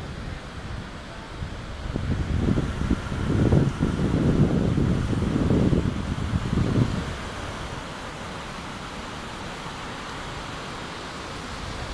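Footsteps scuff on paving as people walk past close by.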